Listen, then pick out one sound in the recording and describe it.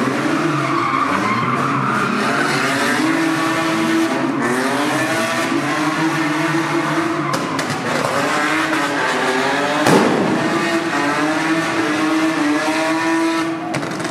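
A car engine revs hard and roars close by.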